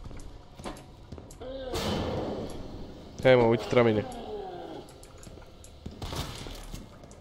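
Gunshots bang in an echoing space.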